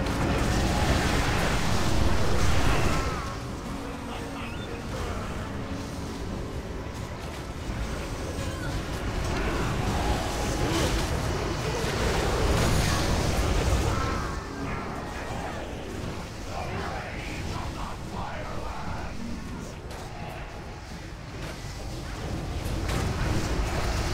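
Magic spells crackle and whoosh over and over, with bursts of fire roaring.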